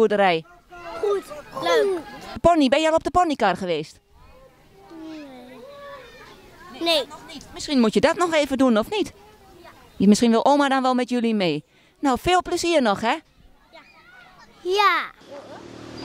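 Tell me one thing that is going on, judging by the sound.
A young child speaks in short bursts close to a microphone.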